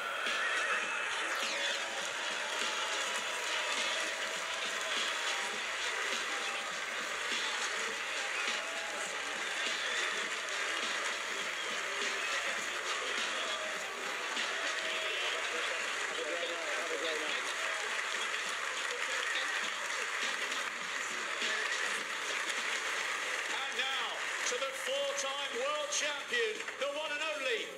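A large crowd applauds and cheers in a big echoing hall.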